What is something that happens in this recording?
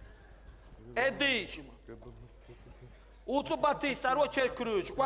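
A man speaks loudly and with animation through a small microphone, in a large hall.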